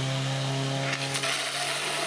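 Water sprays from a hose with a hiss.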